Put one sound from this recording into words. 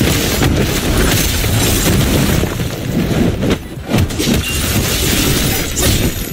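Fighting blows land with sharp hits.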